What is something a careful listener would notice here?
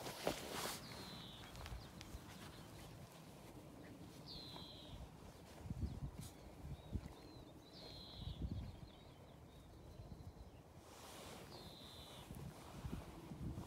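Small puppies give short, high squeaks now and then.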